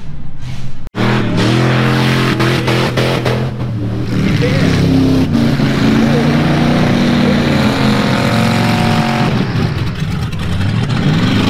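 A truck engine roars and revs across open ground.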